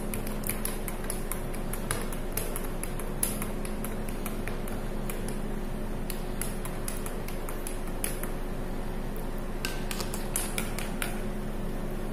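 A spoon clinks against a glass cup as coffee is stirred.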